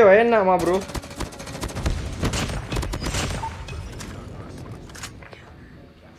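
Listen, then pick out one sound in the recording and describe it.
Assault rifle fire from a video game crackles in full-auto bursts.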